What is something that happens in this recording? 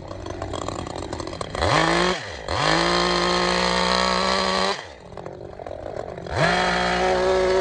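A chainsaw revs up loudly, roars while cutting wood, and drops back to idle several times.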